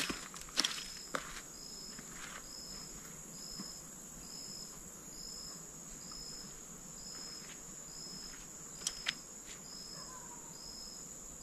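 A man's footsteps crunch on gravel.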